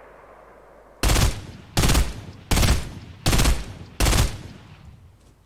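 A rifle fires a quick series of loud shots.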